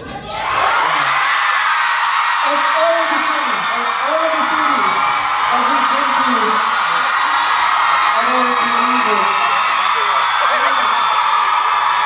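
A young man speaks through a microphone over a loudspeaker in a large hall.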